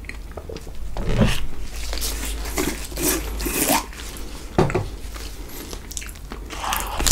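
A plastic jar is handled and rustles close to a microphone.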